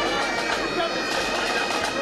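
A pipe band plays bagpipes outdoors.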